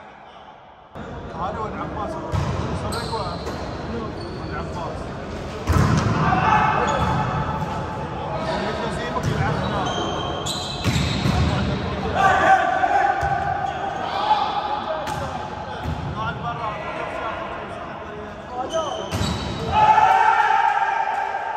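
Sneakers squeak sharply on the hall floor.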